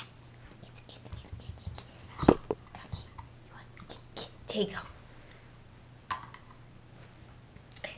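A dog gnaws and crunches on a chew bone.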